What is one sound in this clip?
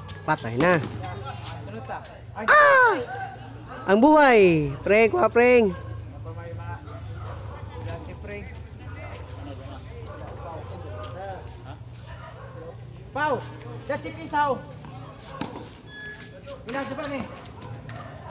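Men shout and call out loudly outdoors.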